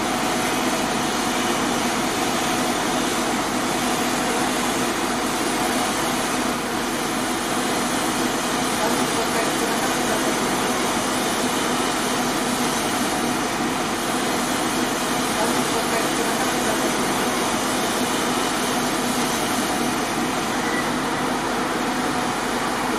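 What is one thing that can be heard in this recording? A pressure washer sprays water in a loud, steady hiss.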